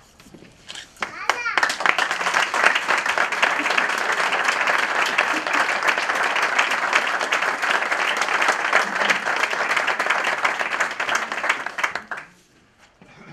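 A group of people applaud loudly in a room.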